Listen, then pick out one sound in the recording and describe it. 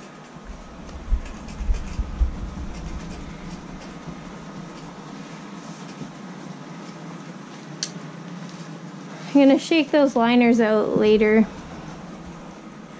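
Soft fabric rustles and flaps as it is handled.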